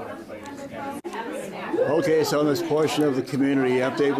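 Men and women chat together in a room.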